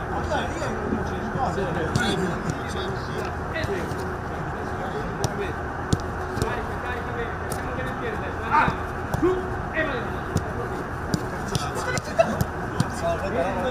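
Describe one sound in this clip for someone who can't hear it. A ball is kicked with sharp thuds on grass.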